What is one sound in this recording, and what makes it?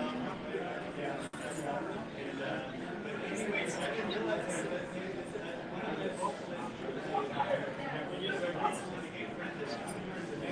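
A crowd of men and women chatter throughout a room.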